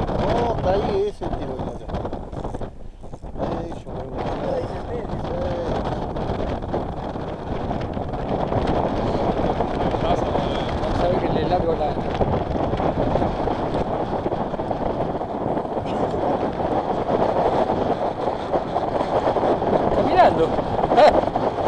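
Small waves lap gently against a boat.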